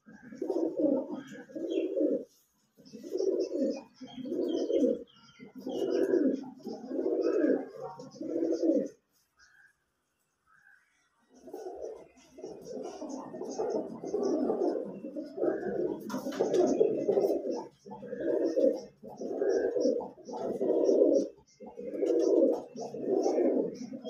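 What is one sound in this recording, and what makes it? Pigeons coo in low, repeated throaty bursts close by.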